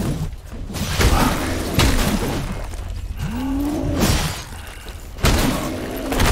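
Sword blows strike flesh with heavy thuds.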